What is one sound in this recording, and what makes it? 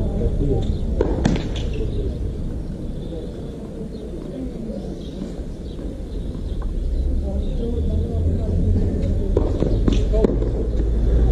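A tennis ball bounces a few times on a hard court.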